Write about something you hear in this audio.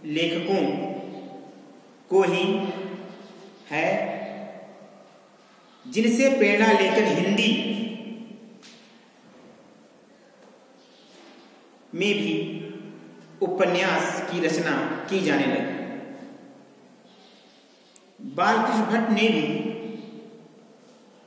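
A man speaks calmly in a room with a slight echo, in bursts with pauses.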